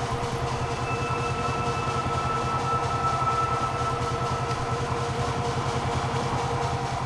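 A heavy metal valve wheel squeals as it turns.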